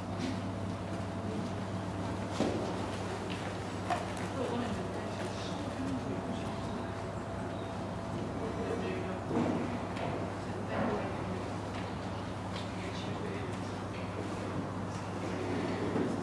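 A horse trots on soft arena footing.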